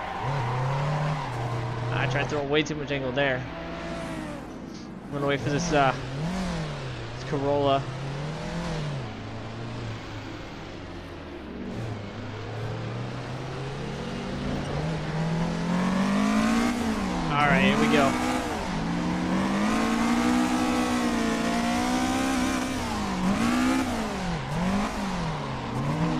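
A racing car engine revs up and down steadily.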